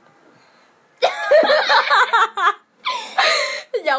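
A young girl laughs loudly.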